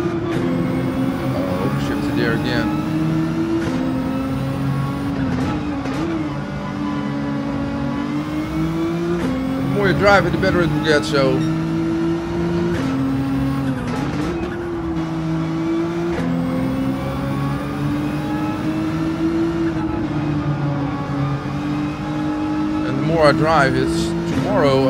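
A racing car engine roars, revving up and dropping in pitch with each gear change.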